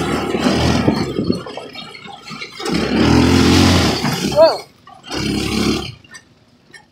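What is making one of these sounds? A go-kart engine revs in bursts.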